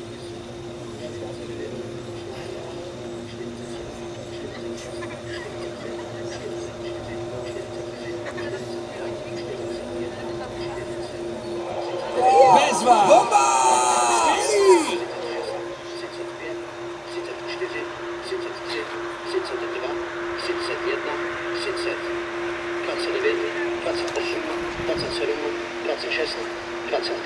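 A film soundtrack plays through loudspeakers.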